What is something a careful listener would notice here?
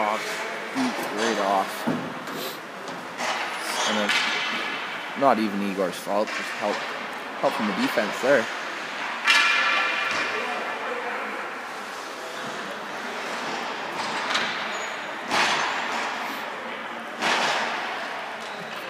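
Hockey sticks clack against the puck with sharp knocks that echo through a large hall.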